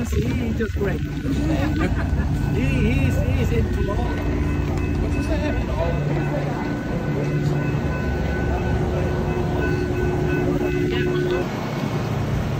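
A train engine idles with a steady hum.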